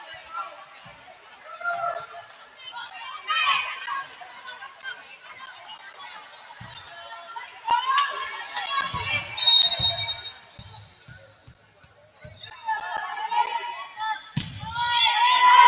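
A volleyball is hit with sharp thumps.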